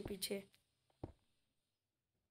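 A block breaks with a short crunch.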